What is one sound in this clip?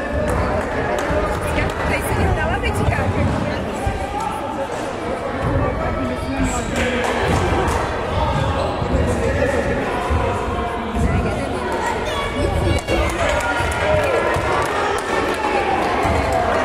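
A volleyball thumps off hands.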